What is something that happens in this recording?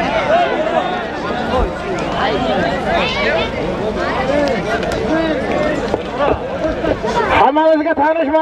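A large crowd of men shouts and calls outdoors.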